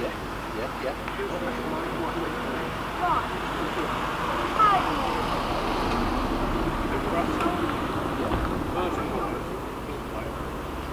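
A steam locomotive chuffs steadily in the distance.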